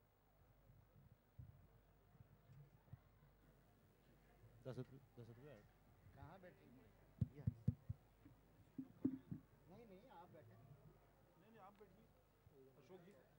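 Several men and women chat quietly in the background.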